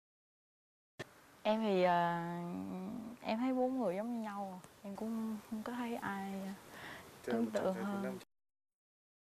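A young woman speaks calmly and hesitantly, close by.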